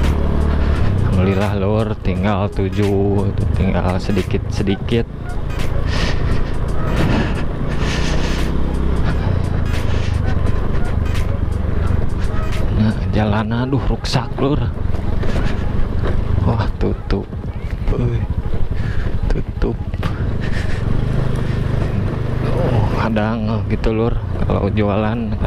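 A motorbike rattles and knocks over a bumpy dirt track.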